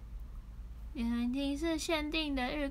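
A young woman speaks close to a microphone in a high, sing-song voice.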